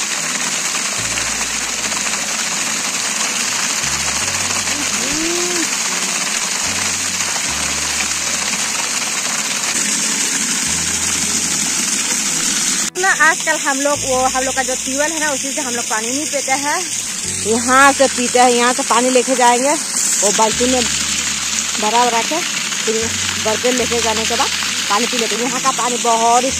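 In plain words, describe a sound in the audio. Water gushes from a pipe and splashes onto the ground.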